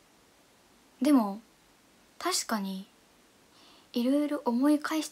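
A young woman speaks softly and casually, close to a microphone.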